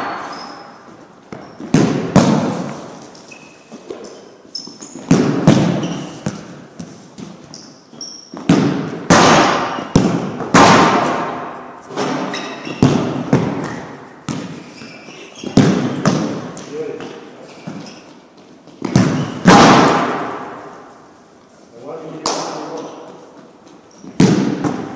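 Sneakers squeak and patter on a hard floor.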